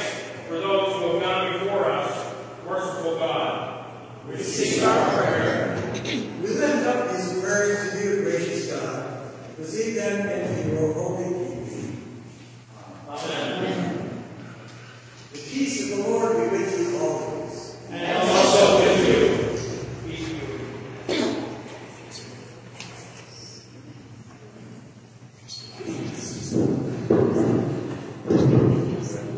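A man speaks calmly from a distance in a large echoing room.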